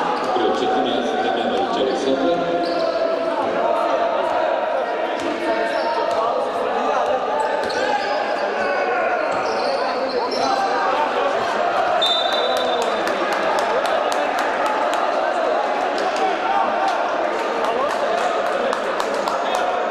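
A crowd murmurs and chatters in an echoing gym.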